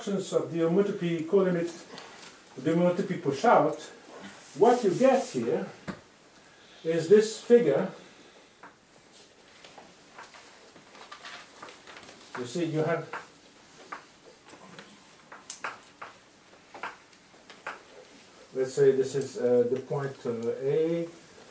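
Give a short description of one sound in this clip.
An older man lectures calmly.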